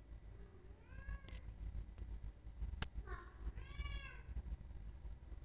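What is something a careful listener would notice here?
A cat meows a few times nearby.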